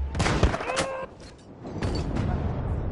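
Rapid gunshots ring out close by, with a ringing echo.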